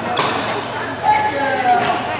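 A racket strikes a shuttlecock with a sharp pop.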